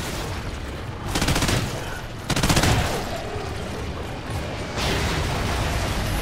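A creature shrieks and explodes nearby.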